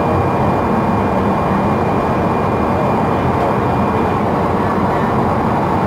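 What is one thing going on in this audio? Tyres roar steadily on the road beneath a moving bus.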